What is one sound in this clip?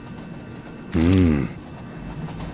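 A short tone sounds as an item is picked up.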